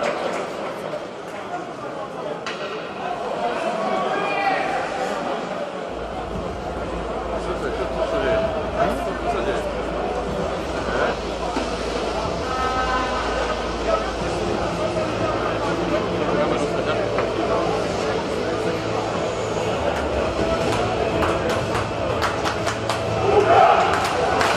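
A crowd chatters and murmurs in a large echoing arena.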